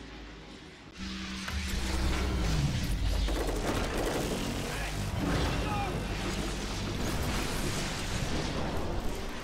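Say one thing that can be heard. A deep, heavy rumble roars and swells with booming blasts.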